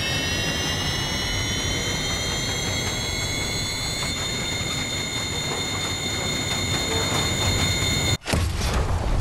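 A jet engine whines with a steady high hum.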